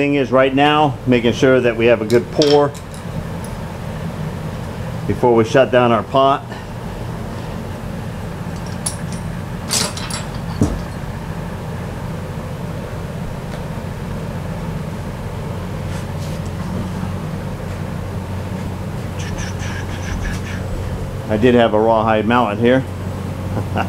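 A man talks calmly and close by, explaining.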